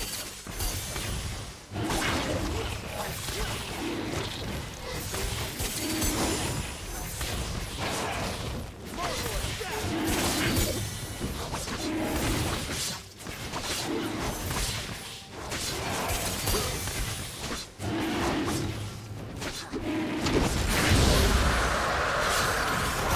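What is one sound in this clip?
Magic spells and combat effects whoosh, crackle and burst in quick succession.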